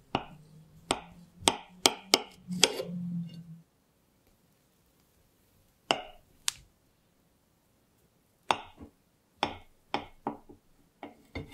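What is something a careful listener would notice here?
A knife taps and clicks against a plate.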